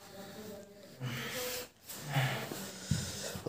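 A man snores softly nearby.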